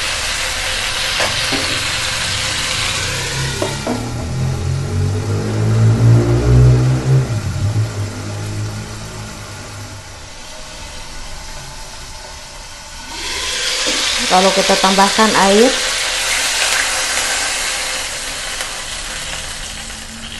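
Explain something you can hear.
Meat sizzles loudly in a hot pan, muffled for a while.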